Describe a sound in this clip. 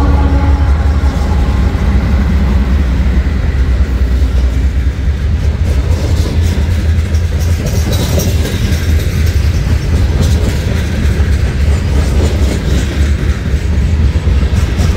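Freight car wheels clatter and squeal over the rails.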